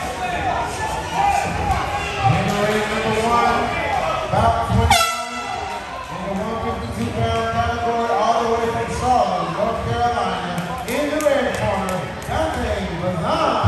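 Many men talk and call out loudly in a large echoing hall.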